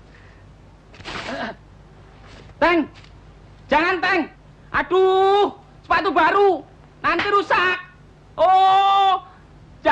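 A man in a tree shouts loudly.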